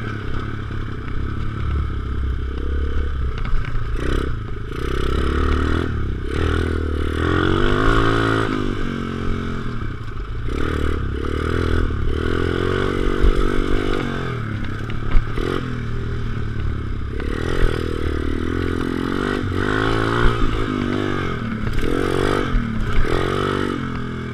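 Tyres rumble over a bumpy dirt track.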